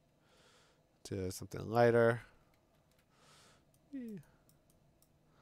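A mouse clicks.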